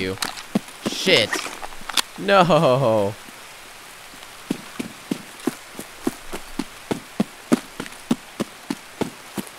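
Footsteps crunch steadily over dirt and grass.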